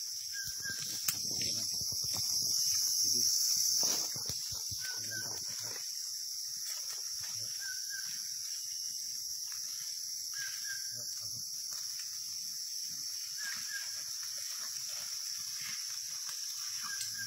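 A large animal rustles through dry leaves.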